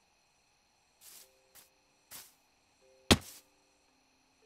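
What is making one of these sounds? Footsteps crunch on grass in a few short bursts.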